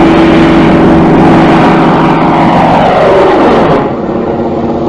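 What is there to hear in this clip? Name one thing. A plane's engine whines downward in pitch as it dives.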